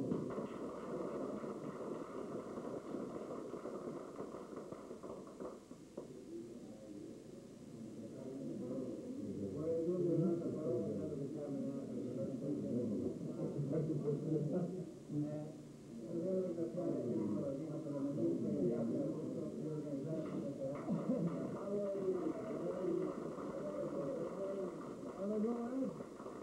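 A small audience claps and applauds.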